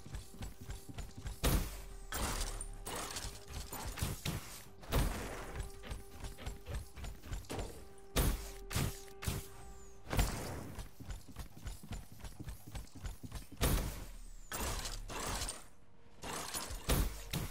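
Quick footsteps clatter on a hard surface.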